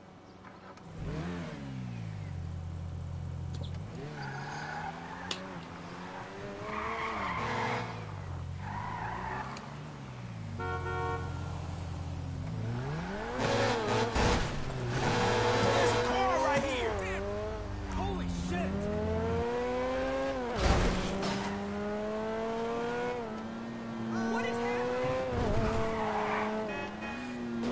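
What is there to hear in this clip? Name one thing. A sports car engine revs up and down, rising and falling in pitch.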